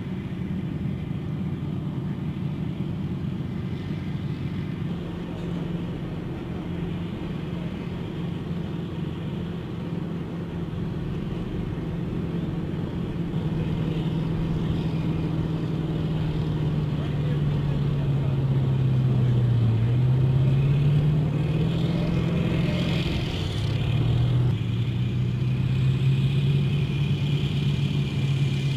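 The diesel engine of an amphibious assault vehicle drones as it moves through water.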